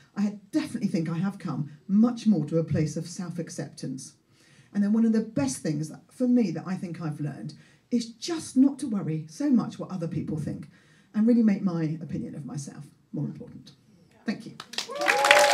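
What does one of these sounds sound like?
A woman speaks with animation into a microphone, with pauses.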